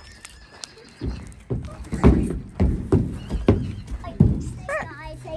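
Hooves thud on a wooden ramp.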